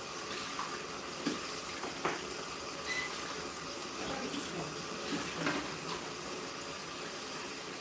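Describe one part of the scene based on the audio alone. Hands rub and squish wet hair.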